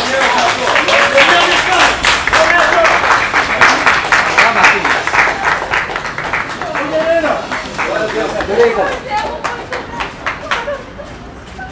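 A crowd claps loudly outdoors.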